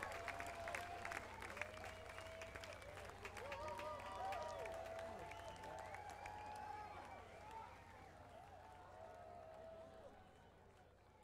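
People in a crowd whistle loudly.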